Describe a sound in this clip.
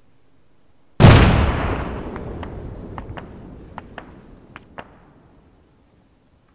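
A loud explosion booms nearby, then rumbles and fades.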